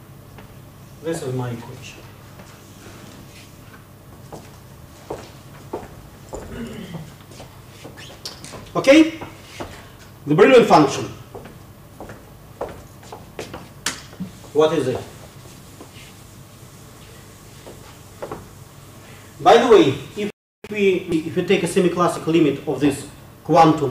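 A man lectures through a microphone, speaking in short bursts.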